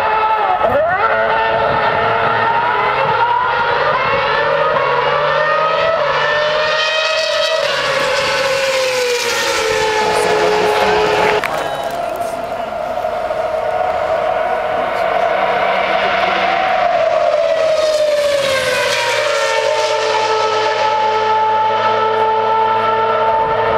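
Racing car engines scream loudly past, rising and falling in pitch.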